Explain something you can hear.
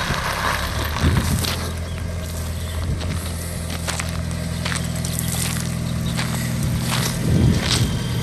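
A small car engine runs at a steady idle nearby.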